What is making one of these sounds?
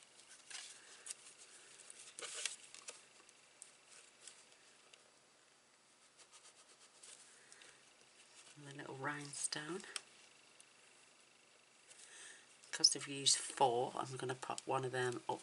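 Paper rustles and crinkles as a card is folded and pressed.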